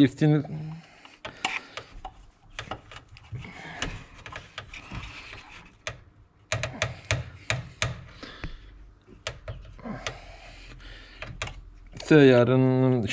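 Metal tools click and clink against engine parts.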